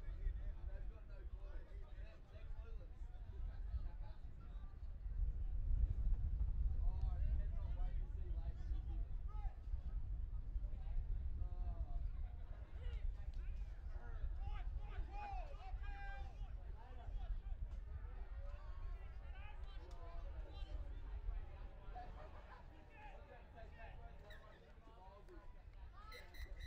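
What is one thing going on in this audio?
Young players shout calls to each other across an open field, heard from a distance.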